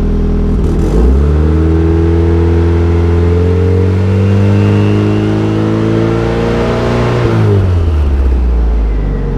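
A car engine revs up, holds and then drops back to idle.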